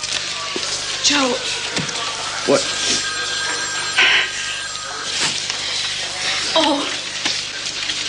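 A woman sobs and cries out in distress nearby.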